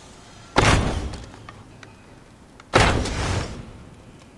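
An arrow is shot from a bow with a sharp twang.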